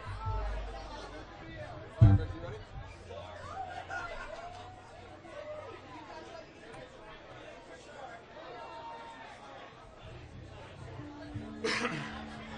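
Electric guitars play loose, wandering notes through amplifiers.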